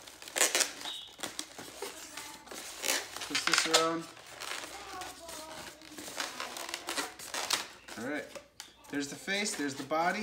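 A rubber balloon squeaks and creaks as it is twisted.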